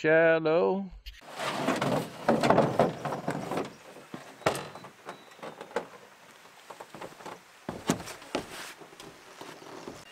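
A canoe scrapes and knocks as it is lifted off a vehicle.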